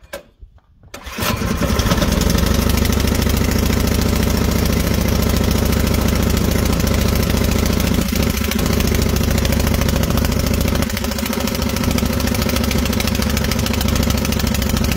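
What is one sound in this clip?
A small petrol engine sputters to life and runs at a loud, steady chug.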